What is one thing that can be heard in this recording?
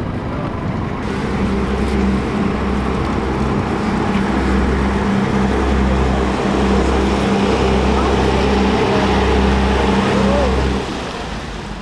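A boat engine hums low and steady nearby.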